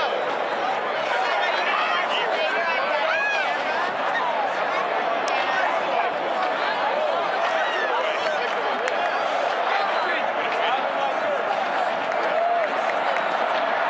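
Spectators nearby shout and whoop.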